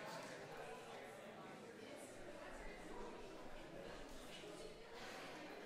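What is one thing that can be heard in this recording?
A seated audience murmurs and chats quietly in a large echoing hall.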